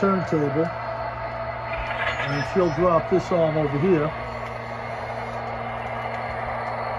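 A toy train motor hums steadily on its track.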